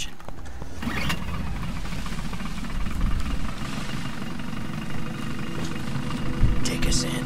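A boat engine starts and hums steadily.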